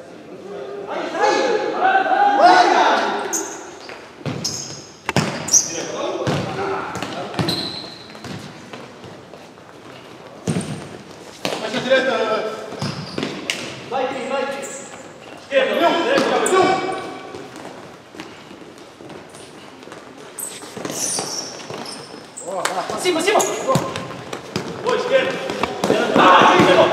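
Men shout to each other in a large echoing hall.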